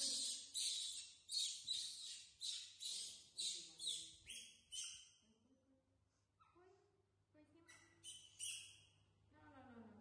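Young monkeys shriek in loud, high, repeated bursts.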